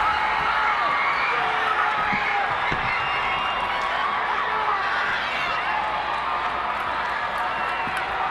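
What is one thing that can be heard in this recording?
A large arena crowd murmurs and cheers steadily, echoing.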